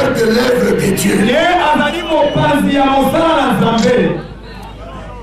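A man speaks forcefully into a microphone through loudspeakers.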